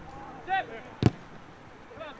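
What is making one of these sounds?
A ball is kicked with a thud.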